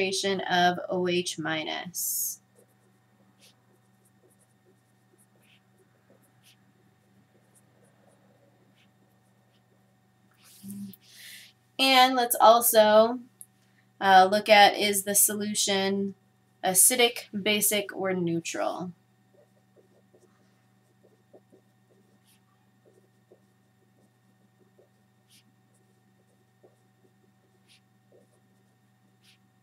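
A marker squeaks and scratches faintly on paper.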